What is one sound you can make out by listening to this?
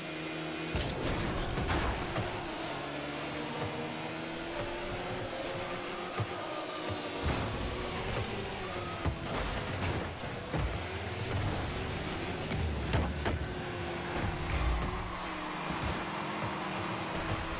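A car engine hums and whines, rising and falling in pitch.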